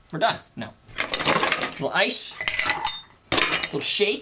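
Ice cubes clatter into a metal shaker.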